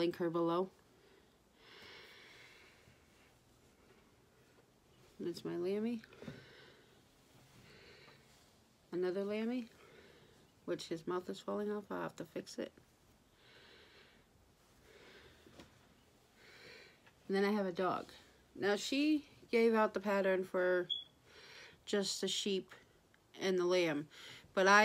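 A woman talks calmly close by, in short bursts with pauses.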